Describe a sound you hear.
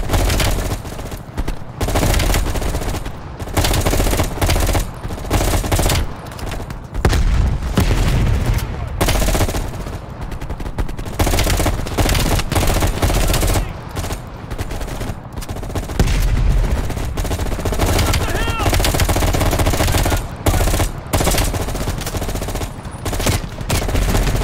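Rifle gunfire bursts out in rapid, loud volleys.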